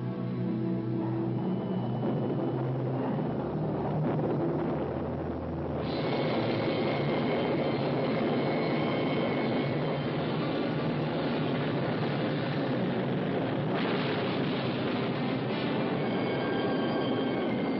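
A rocket engine roars.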